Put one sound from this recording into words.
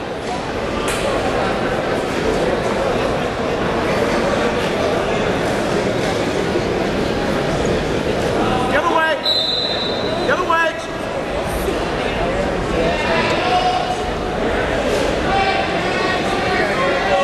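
A man shouts coaching instructions from the side.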